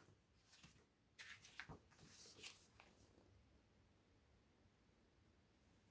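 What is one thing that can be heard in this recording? Book pages rustle and turn.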